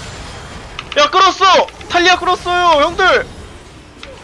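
A young man exclaims excitedly into a microphone.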